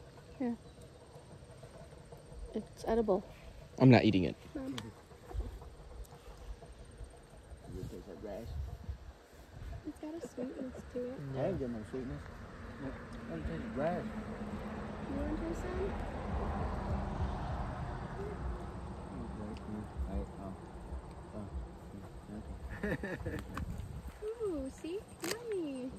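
Several adults, men and women, talk casually nearby outdoors.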